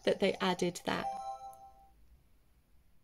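A handheld electronic toy plays short beeping tones.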